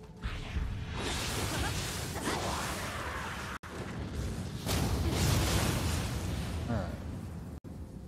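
Loud magical blasts roar and crackle in a game battle.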